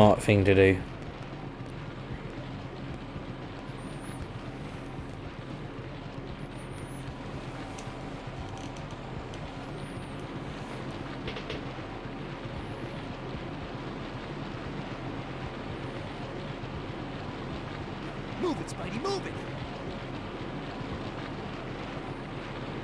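Water flows steadily in a channel.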